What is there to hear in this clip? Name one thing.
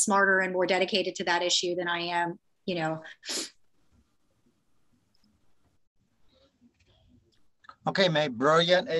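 A woman speaks calmly and warmly over an online call.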